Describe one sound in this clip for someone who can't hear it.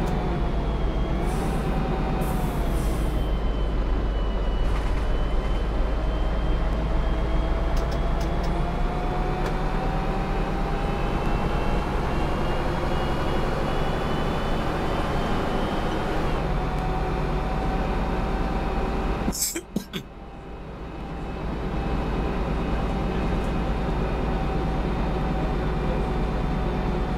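A bus engine drones steadily with a low whine, briefly dropping away before picking up again.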